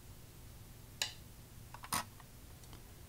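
A game stone clicks sharply onto a board.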